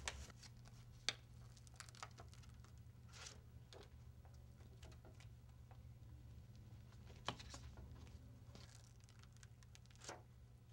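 Stiff plastic pads rustle and tap as hands handle them.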